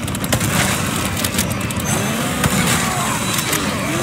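A chainsaw engine buzzes and revs.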